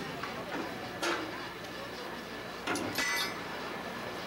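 Metal clanks and knocks sharply.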